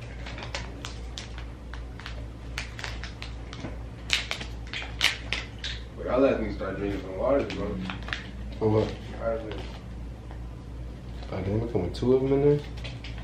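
Paper crinkles and rustles close by.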